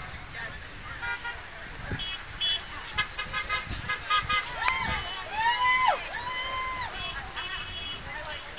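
Car horns honk several times.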